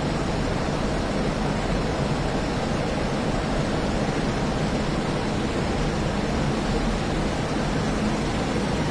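A twin-engine jet fighter roars in flight, heard from inside the cockpit.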